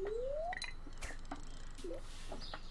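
A bobber plops into the water.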